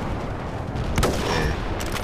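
A rifle fires a single loud shot that echoes.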